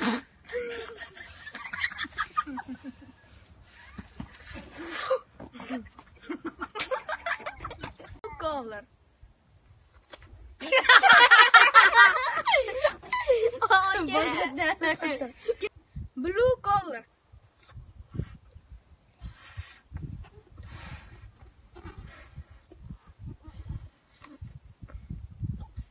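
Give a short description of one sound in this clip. A young boy blows air into a balloon in puffs.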